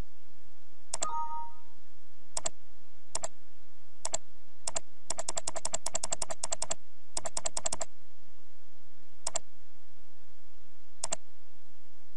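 A computer mouse clicks several times, sometimes in quick bursts.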